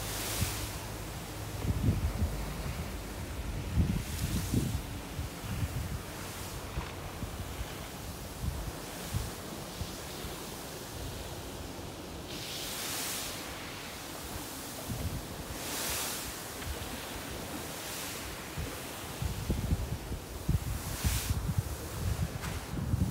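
Waves wash onto the shore in the distance.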